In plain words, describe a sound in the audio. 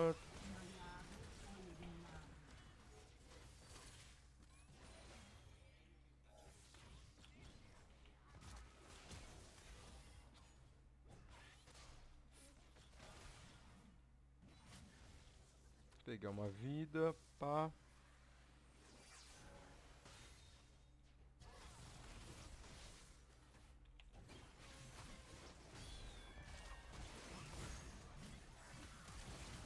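Video game spells whoosh and crackle during a fight.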